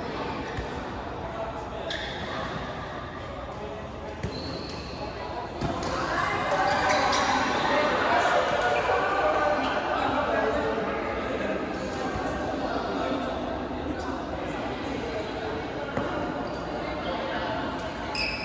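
Shuttlecocks are struck with rackets, with sharp taps echoing in a large hall.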